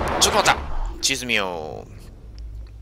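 A menu opens with a falling electronic whoosh.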